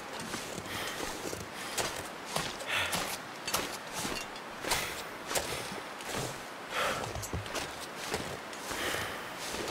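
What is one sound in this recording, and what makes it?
Footsteps crunch through deep snow at a steady pace.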